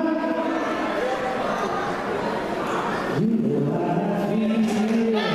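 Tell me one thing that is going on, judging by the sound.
A woman sings loudly into a microphone through loudspeakers in an echoing hall.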